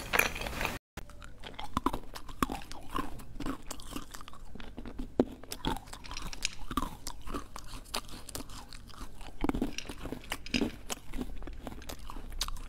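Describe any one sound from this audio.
A young woman eats with soft, wet chewing sounds close to a microphone.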